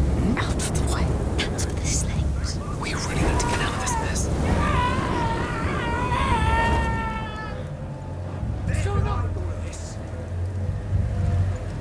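Flames crackle and roar steadily.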